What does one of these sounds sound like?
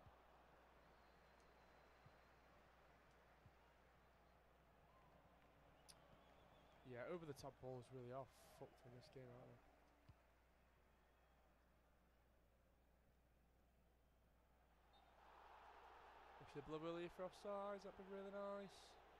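A stadium crowd murmurs and then swells into a roar.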